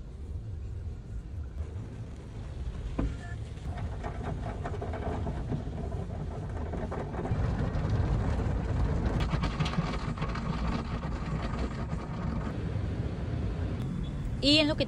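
Water sprays and drums hard against a car's windshield.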